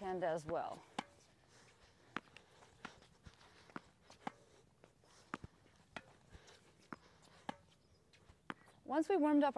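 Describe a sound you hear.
Tennis balls are struck back and forth with rackets, with sharp pops.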